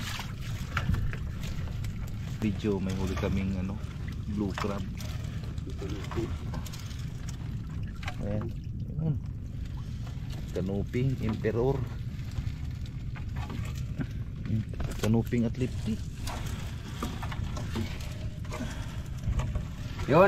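A fishing net rustles as it is hauled aboard.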